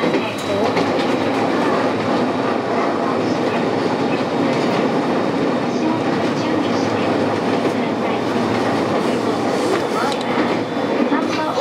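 Train wheels click and rattle over rail joints.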